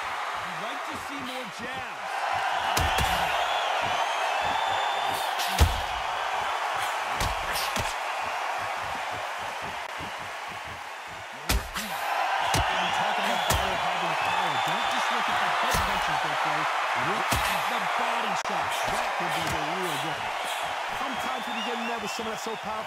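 A crowd cheers and roars.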